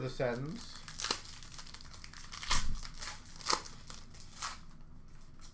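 Hands handle and flick trading cards up close, with crisp snaps and rustles.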